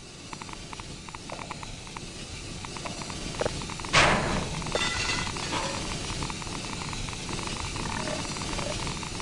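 Footsteps clank steadily inside a narrow metal duct.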